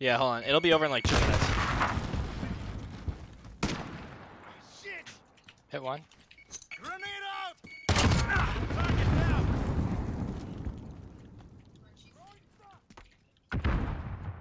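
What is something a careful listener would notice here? A rifle fires loud shots that boom and fade.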